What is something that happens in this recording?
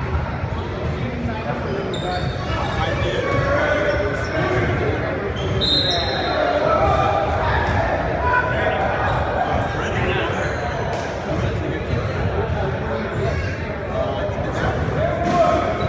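Young men call out to each other across the gym.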